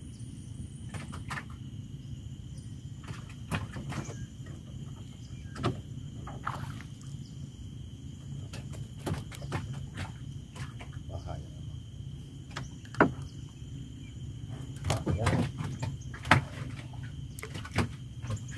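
Wooden knocks sound on a boat's hull now and then.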